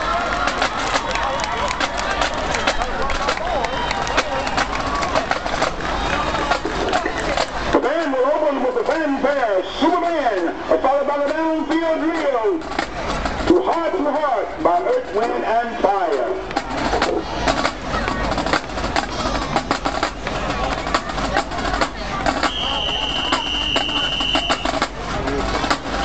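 A marching band's brass plays loudly outdoors.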